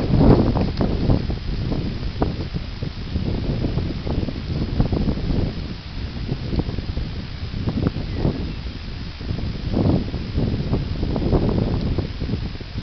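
A horse's hooves thud and crunch on dry stubble as it walks.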